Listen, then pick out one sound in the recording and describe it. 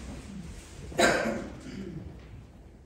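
A middle-aged woman speaks a few words close by.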